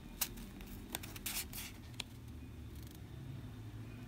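A card slides out of a wallet slot.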